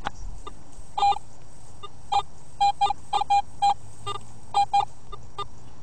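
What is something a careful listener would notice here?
A metal detector gives short beeps as its coil sweeps over the ground.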